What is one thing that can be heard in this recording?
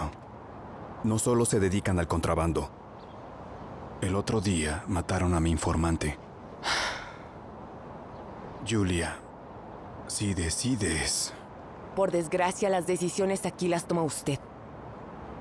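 A man speaks quietly nearby.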